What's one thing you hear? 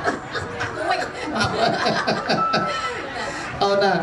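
A group of people laughs.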